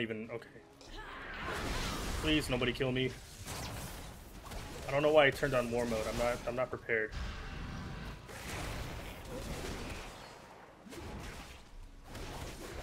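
Spell and combat sound effects of a video game whoosh and crackle.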